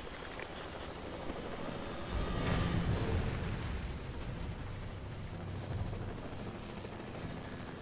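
Helicopter rotors thump overhead.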